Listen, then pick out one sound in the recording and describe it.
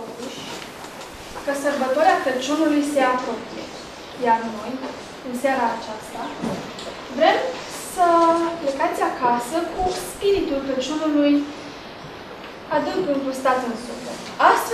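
A young woman speaks calmly into a microphone, announcing.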